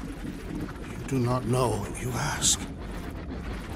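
A deep-voiced man speaks slowly and gravely.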